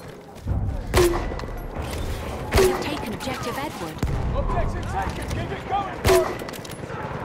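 A rifle fires single loud shots with a short echo.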